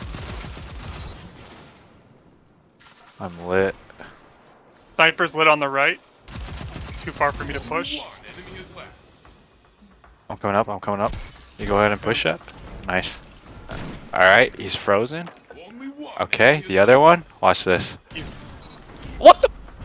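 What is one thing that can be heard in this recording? Gunshots fire in short bursts.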